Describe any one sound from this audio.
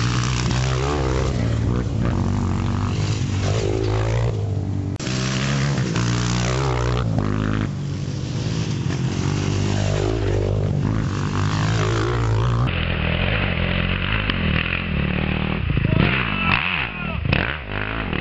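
A dirt bike engine revs loudly, rising and falling as the bike climbs a dirt track outdoors.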